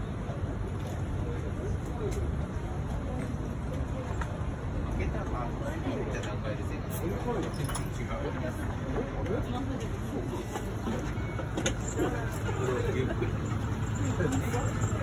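Vending machines hum steadily.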